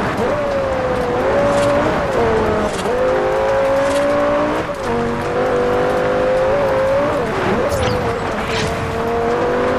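Tyres skid and crunch on a gravel road.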